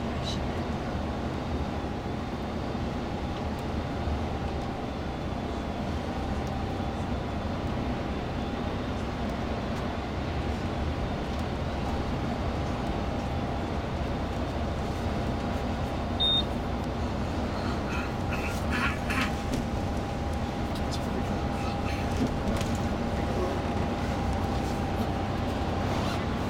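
An engine hums steadily from inside a moving bus.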